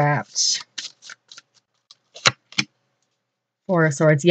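A playing card slides across a table and is set down.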